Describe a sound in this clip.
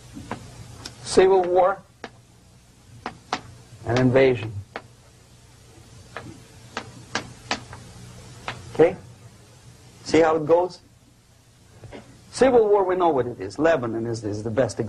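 An elderly man lectures calmly, speaking in short bursts.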